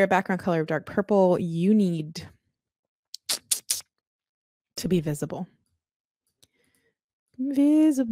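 A young woman talks with animation into a close microphone, in pauses.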